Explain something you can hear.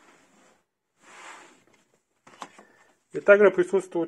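A cardboard case rustles and taps as hands handle it.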